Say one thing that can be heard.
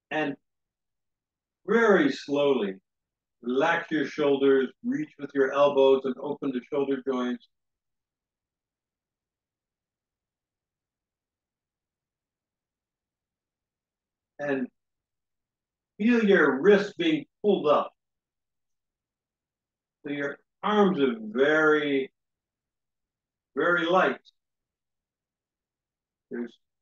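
A man speaks calmly through a microphone, giving instructions in short phrases with pauses.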